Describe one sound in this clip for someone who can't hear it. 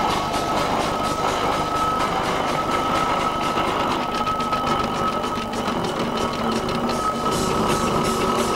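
A steam traction engine chuffs steadily as it rolls slowly along.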